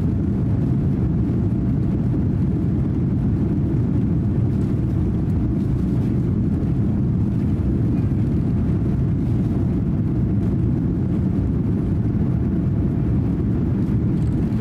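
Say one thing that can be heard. Jet engines roar steadily, heard from inside an airliner cabin.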